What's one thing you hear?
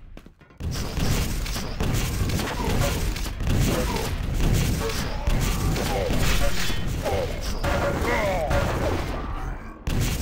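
A rocket launcher fires with a whooshing thump.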